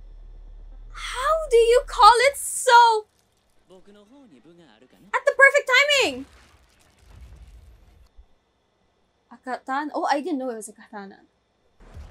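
A second young woman laughs and exclaims excitedly.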